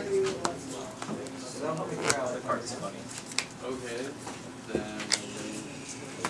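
A deck of cards is shuffled by hand.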